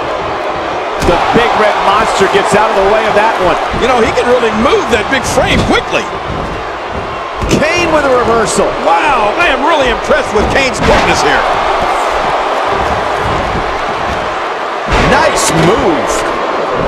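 Bodies land with heavy thuds on a wrestling ring mat.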